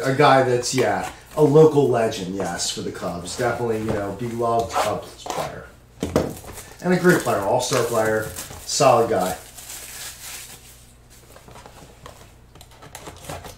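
Plastic wrapping crinkles in handling.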